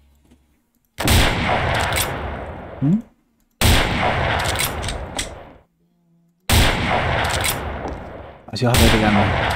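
A rifle fires loud shots that ring out and echo.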